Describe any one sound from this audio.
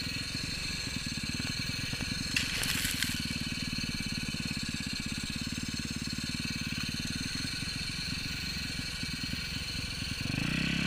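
A dirt bike engine putters loudly and steadily close by.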